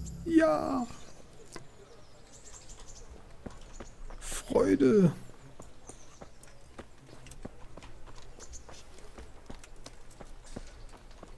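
Footsteps crunch steadily on dirt and grass.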